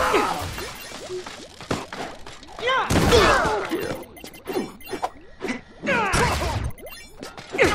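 Punches and kicks land with sharp, heavy thuds in a quick flurry.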